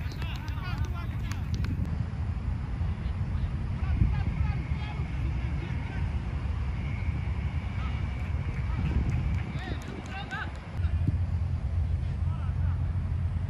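Distant players shout during a football match.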